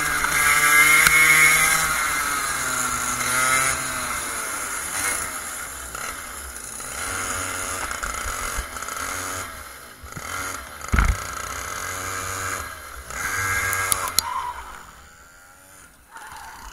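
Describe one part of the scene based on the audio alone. A kart engine revs up and down loudly close by.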